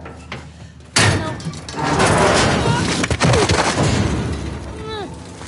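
A loud crash and clatter bursts out suddenly.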